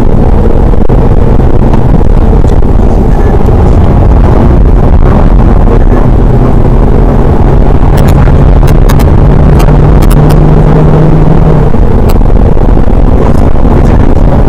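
A car engine roars loudly inside the cabin, rising and falling in pitch as it accelerates.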